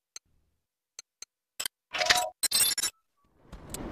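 Menu beeps click in quick succession.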